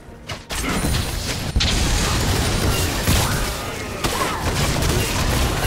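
Game spell effects crackle and clash in a fast fight.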